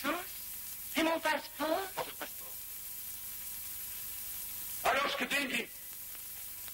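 A man speaks in short, tense bursts, slightly muffled as on an old film recording.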